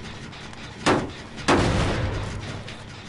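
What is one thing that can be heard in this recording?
A machine clanks and bangs loudly.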